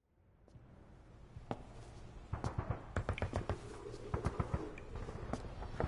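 Heavy boots step on a hard floor.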